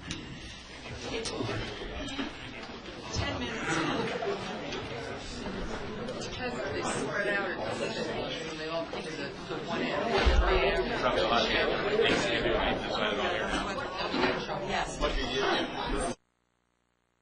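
A crowd chatters and murmurs loudly.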